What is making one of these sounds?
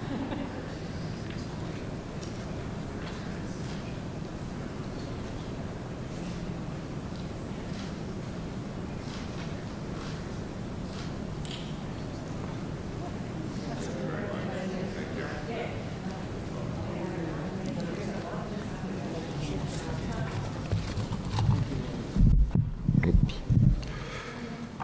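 Men and women murmur and chat quietly in a large echoing hall.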